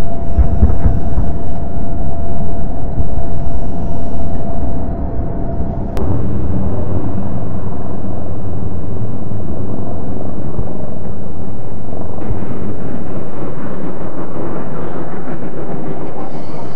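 A fighter jet's engine roars in flight.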